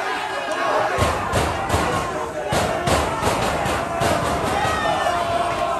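A crowd of men claps in rhythm.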